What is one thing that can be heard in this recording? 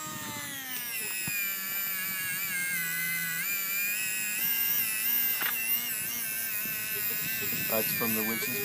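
A small electric motor whines steadily, its pitch wavering up and down.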